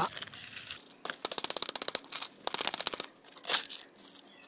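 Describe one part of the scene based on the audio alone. A small trowel scrapes and scoops gritty soil.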